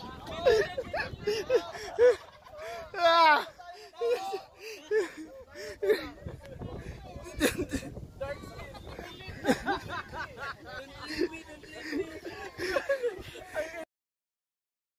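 Men and women talk and laugh nearby outdoors.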